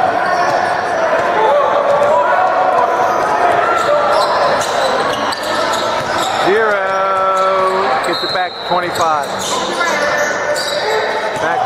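Young men shout to each other across an echoing gym.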